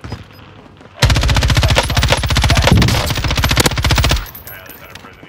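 A rifle fires in a rapid burst of loud shots.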